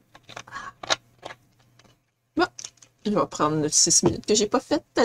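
A young woman speaks with animation, close to a microphone.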